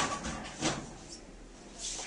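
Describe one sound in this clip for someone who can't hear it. A locker door clanks.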